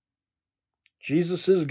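A young man speaks calmly close to the microphone.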